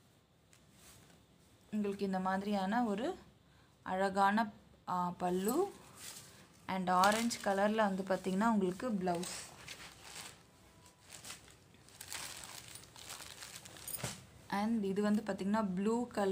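Fabric rustles as hands handle cloth.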